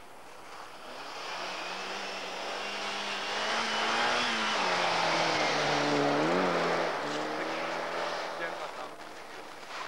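A rally car engine revs hard, rising and falling in pitch as the car speeds past.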